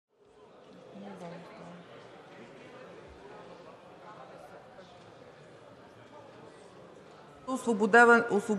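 Many people murmur and talk at once in a large hall.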